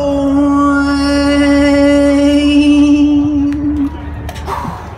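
A young man sings a long, loud, held note outdoors.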